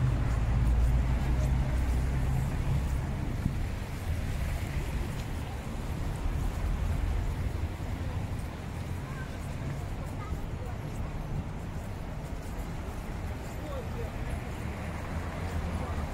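Traffic rumbles along a nearby street.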